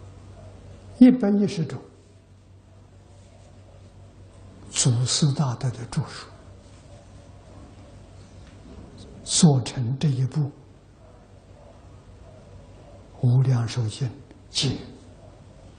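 An elderly man speaks calmly in short phrases with pauses, through a clip-on microphone.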